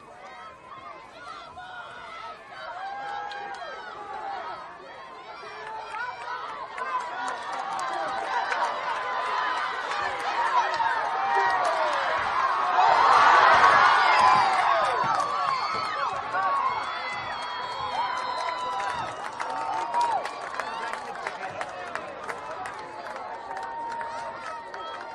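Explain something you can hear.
A crowd of spectators cheers and shouts outdoors, swelling to a loud roar and then easing off.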